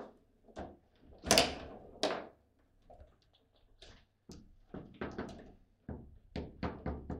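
A foosball ball clacks sharply against plastic players and the table walls.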